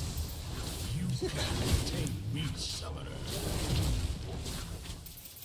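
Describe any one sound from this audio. Fantasy battle sound effects whoosh and crackle as characters fight.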